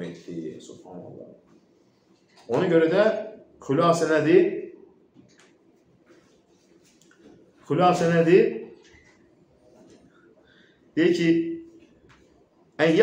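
A middle-aged man speaks calmly in short bursts, close to a microphone.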